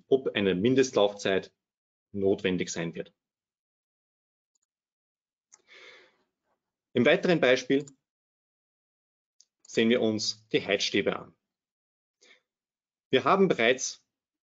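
A young man speaks calmly and clearly into a microphone, with pauses.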